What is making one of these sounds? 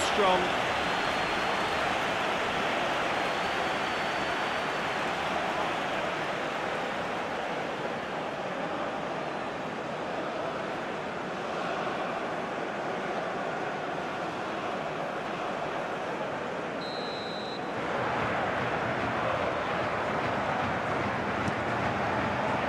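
A large stadium crowd roars and chants steadily throughout.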